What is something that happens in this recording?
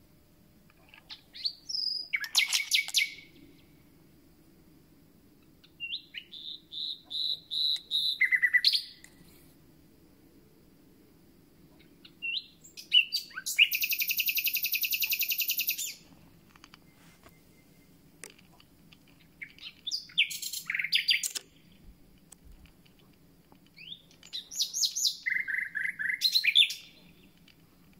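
A small bird sings loud, varied phrases of whistles, trills and rapid rattles close by, with short pauses between them.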